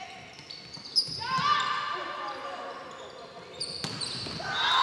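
A volleyball is struck with loud smacks.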